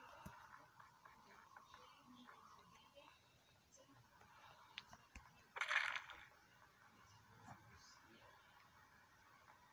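Quick, soft footsteps patter along.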